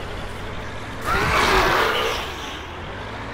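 A truck thuds into a figure on the road with a loud crunch.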